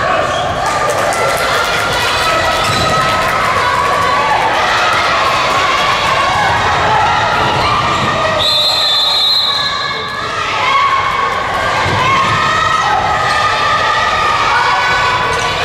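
A crowd of young spectators cheers and chants loudly in a large echoing hall.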